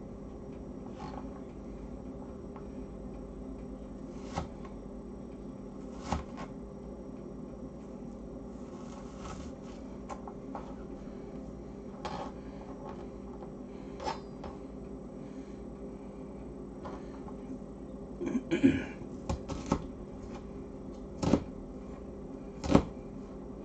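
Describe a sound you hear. A knife chops on a cutting board with sharp knocks.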